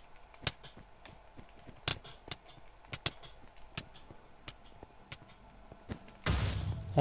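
Quick, sharp tapping clicks come as blocks are struck and broken in a video game.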